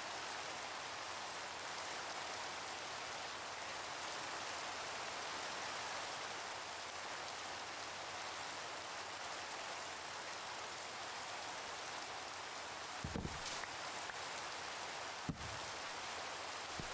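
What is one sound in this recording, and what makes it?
Rain falls steadily with a constant hiss.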